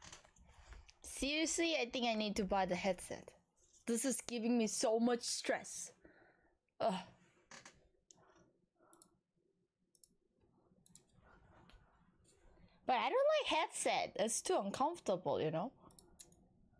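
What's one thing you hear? A young woman talks with animation into a microphone, in bursts with pauses.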